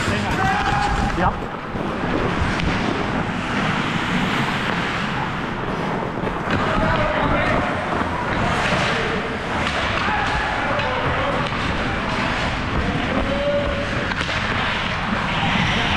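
Ice skates scrape and carve across the ice, close by.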